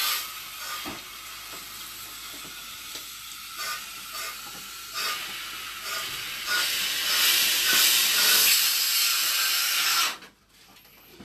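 A drain cleaning machine whirs and rattles, growing louder before it stops.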